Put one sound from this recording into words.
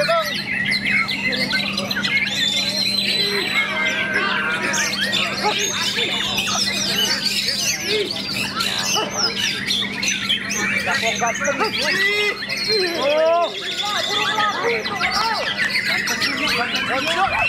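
A caged white-rumped shama sings a rich, varied song of fast whistles and trills.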